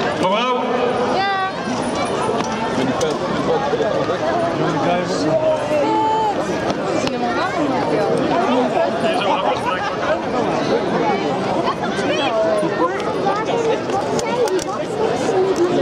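Children shriek and call out excitedly.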